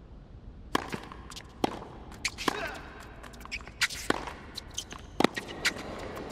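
Tennis shoes squeak and patter on a hard court.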